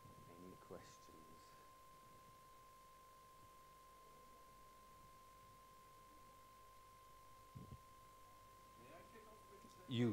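A man speaks faintly at a distance in a quiet room.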